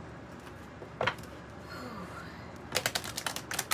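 Cards flick and slap together as they are shuffled by hand.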